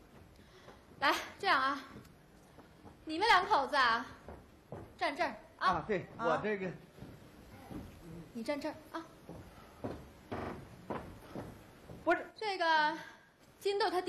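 A woman speaks loudly and expressively through a stage microphone.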